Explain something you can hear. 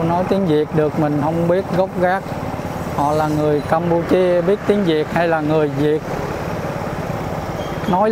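Motorbike engines hum along a street nearby.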